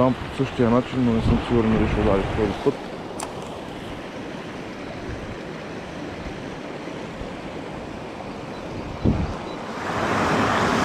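A shallow stream trickles gently over stones.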